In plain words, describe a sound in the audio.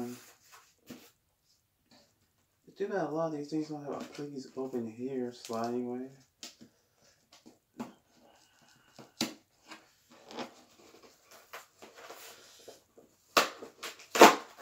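Paper rustles and crinkles as a package is handled.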